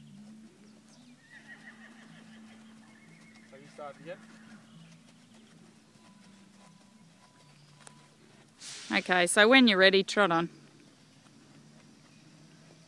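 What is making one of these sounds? A horse's hooves thud softly on sand.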